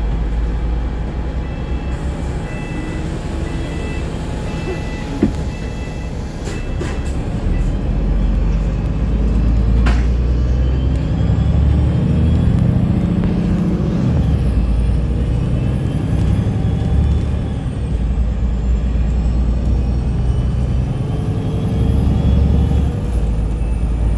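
Traffic passes by on the street outside.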